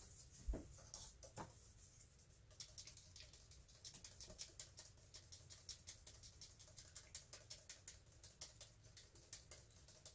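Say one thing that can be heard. Paint is stirred briskly in a plastic cup, with quick clicking scrapes.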